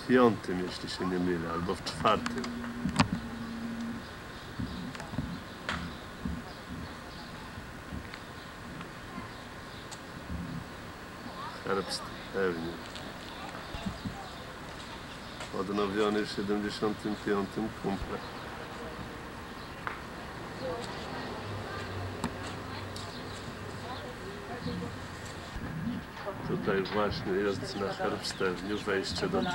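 Women talk nearby outdoors.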